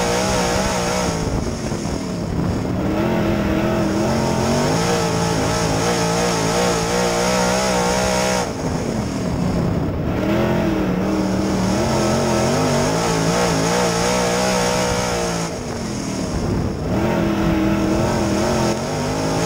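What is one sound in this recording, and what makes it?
A race car engine roars loudly up close, rising and falling in pitch again and again.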